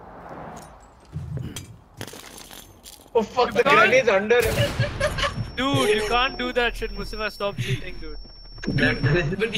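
Glass shatters and tinkles to the ground.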